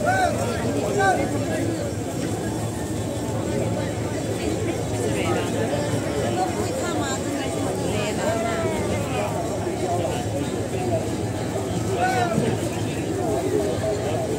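A large crowd murmurs and calls out outdoors.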